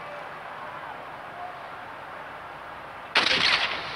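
A sniper rifle fires a single shot.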